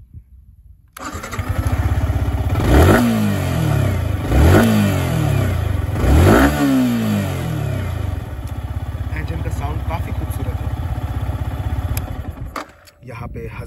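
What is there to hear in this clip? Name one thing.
A motorcycle engine idles with a steady rumble.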